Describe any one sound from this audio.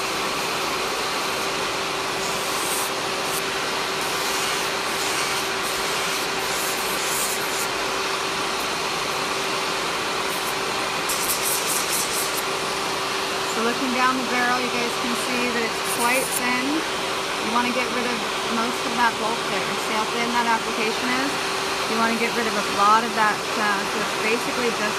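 An electric nail drill whirs steadily.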